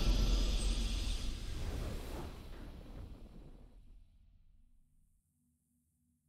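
A triumphant victory fanfare rings out and slowly fades away.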